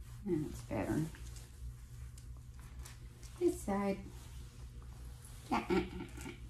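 A middle-aged woman talks calmly nearby.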